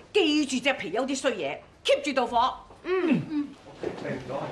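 A middle-aged woman speaks firmly and sternly, close by.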